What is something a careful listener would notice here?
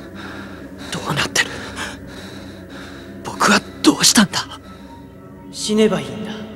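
A young man speaks quietly and shakily.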